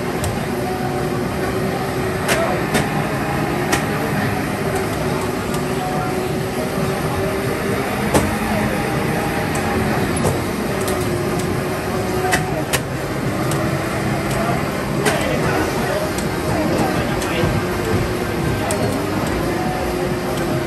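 Racing game engines roar steadily from arcade loudspeakers.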